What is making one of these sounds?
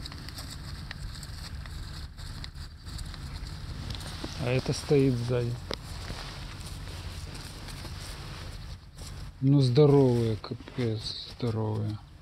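Horses walk softly through grass.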